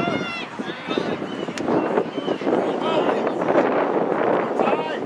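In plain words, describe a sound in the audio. Lacrosse sticks clack together.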